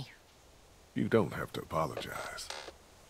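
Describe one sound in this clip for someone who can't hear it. A man answers calmly in a low voice.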